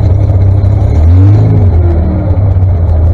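A tractor engine revs up briefly.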